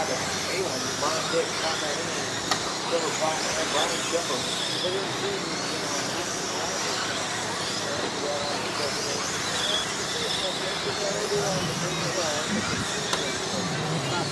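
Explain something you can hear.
Small electric motors whine as radio-controlled cars race.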